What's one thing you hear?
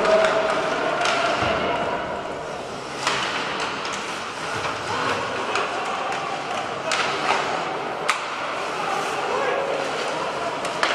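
Hockey sticks click against the puck and each other.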